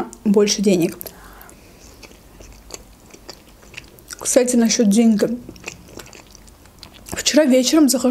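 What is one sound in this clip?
A young woman chews food with soft, wet mouth sounds.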